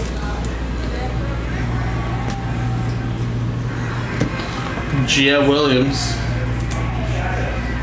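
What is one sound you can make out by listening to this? Trading cards slide and rustle against each other.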